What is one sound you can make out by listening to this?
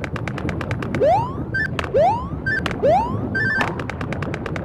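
Springy rising jump sounds play as a game character leaps.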